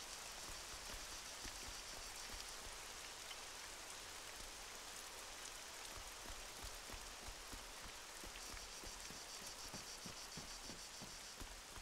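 Footsteps thud steadily on wooden floorboards.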